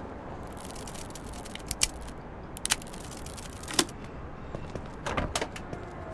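A man jiggles and clicks at a car door lock.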